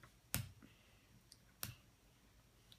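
Small plastic toy bricks click together.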